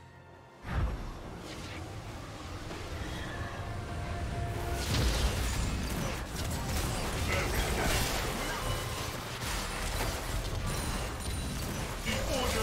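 Magic spell effects whoosh and crackle in a busy fight.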